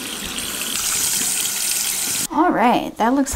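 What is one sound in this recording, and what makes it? Water runs from a tap and splashes onto a foot.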